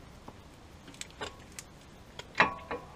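Metal tools clink as hands work under a car.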